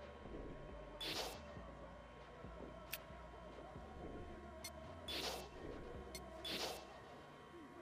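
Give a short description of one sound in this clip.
Soft whooshing menu sounds play as selections change.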